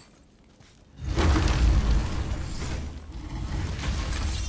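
A heavy door rumbles and grinds as it opens.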